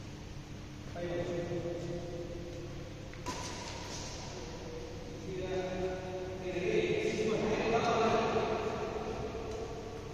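Men talk across a badminton court in an echoing hall.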